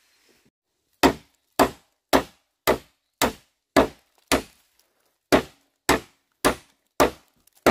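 A machete chops into bamboo with sharp, steady, hollow thwacks.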